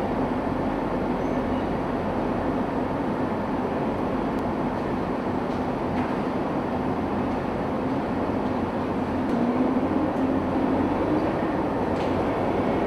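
An amphibious assault vehicle's diesel engine idles with a steady rumble, echoing in a large enclosed steel space.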